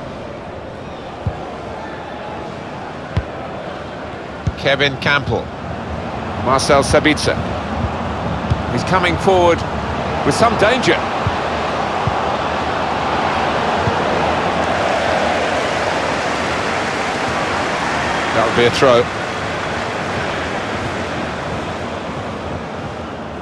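A large stadium crowd roars and murmurs steadily, swelling louder for a while.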